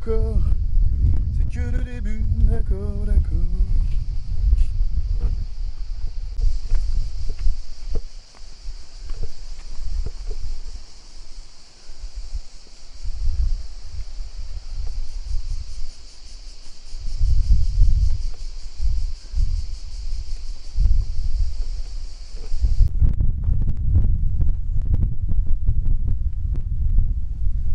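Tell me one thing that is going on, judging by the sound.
Wind blows and buffets loudly outdoors.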